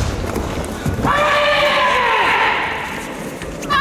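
A young woman shouts a sharp karate kiai in a large echoing hall.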